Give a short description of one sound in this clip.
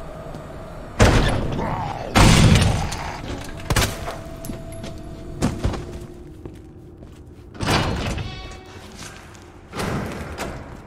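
A handgun fires several loud shots in an echoing room.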